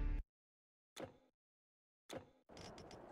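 A game menu button clicks.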